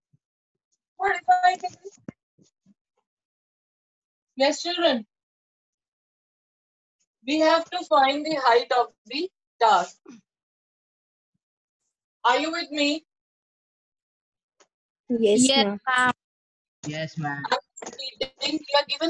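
A woman explains calmly in short bursts, close by.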